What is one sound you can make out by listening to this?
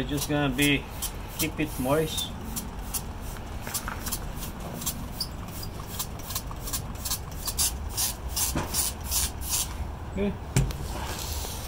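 A spray bottle hisses in quick, repeated squirts.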